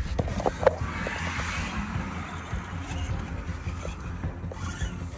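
A car drives along a road with a low rumble.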